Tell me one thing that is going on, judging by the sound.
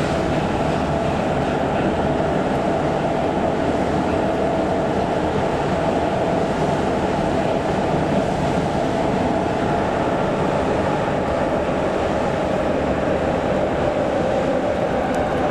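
The wheels of a subway car roar and screech steadily on the rails.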